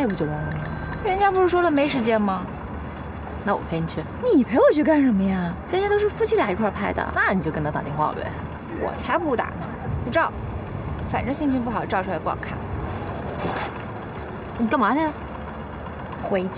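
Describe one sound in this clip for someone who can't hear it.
A second young woman answers in a sulky, complaining tone.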